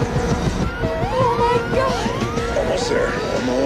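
A woman screams in alarm.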